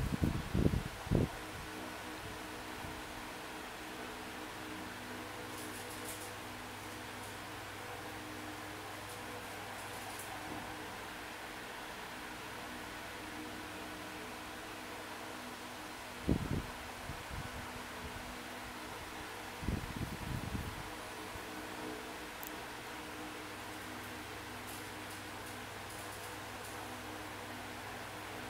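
A video game's cheerful music plays softly from a tablet speaker.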